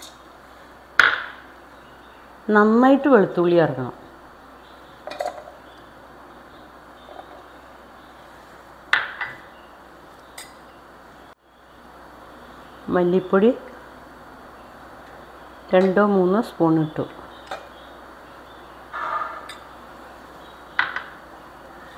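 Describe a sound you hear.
A spoon clinks against a metal cup.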